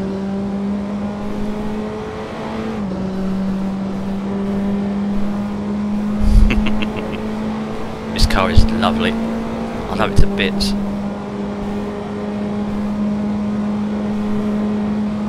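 A racing car engine drones steadily, dropping in pitch as it shifts gear.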